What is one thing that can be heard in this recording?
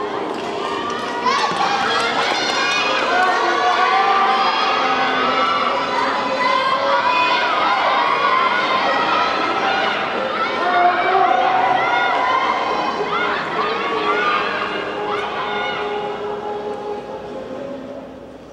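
Spectators shout encouragement in a large echoing hall.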